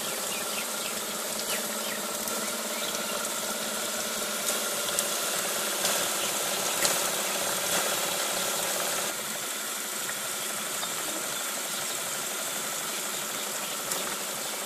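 Water gushes from a hose and churns steadily in a box of water.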